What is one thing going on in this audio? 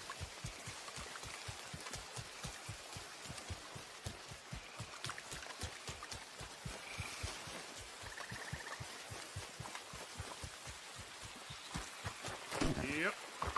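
Footsteps run quickly on a hard path.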